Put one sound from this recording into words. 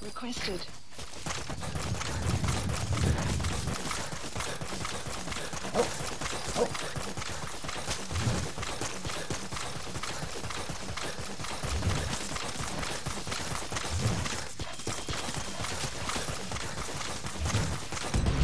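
Footsteps run quickly through dry grass.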